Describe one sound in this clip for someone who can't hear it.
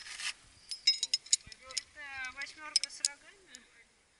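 Metal clips clink and click as they are handled.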